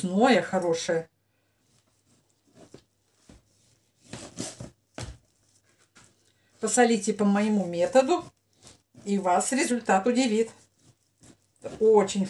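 A knife slices through meat and taps on a cutting board.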